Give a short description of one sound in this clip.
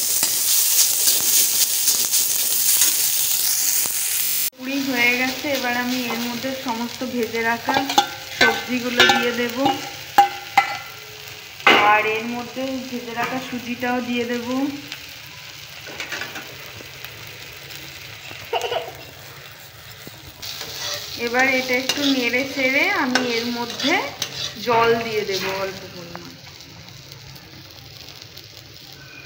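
A metal spatula scrapes and clatters against a metal pan.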